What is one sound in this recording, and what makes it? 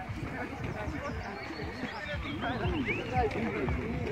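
Young women chatter as they jog past.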